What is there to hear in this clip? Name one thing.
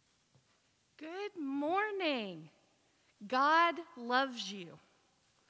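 A woman speaks in a lively, sing-song voice through a microphone.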